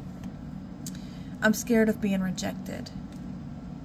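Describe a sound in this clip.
A paper card is laid down with a light tap.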